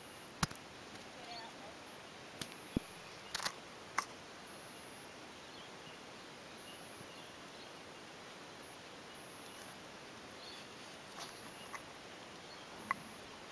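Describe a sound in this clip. A horse's hooves thud softly on sand at a trot.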